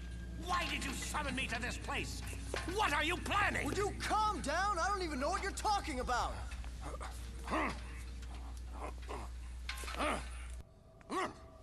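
An older man speaks in a strained voice.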